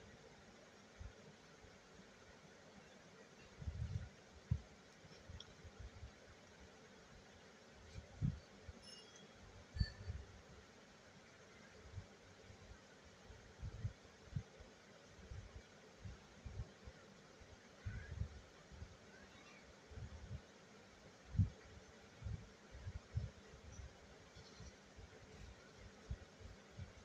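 Cloth rustles and thumps as hands handle it.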